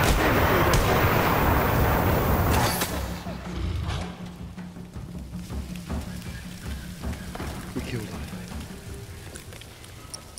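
Flames crackle and hiss.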